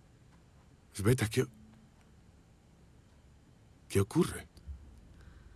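A man speaks briefly and tensely, close by.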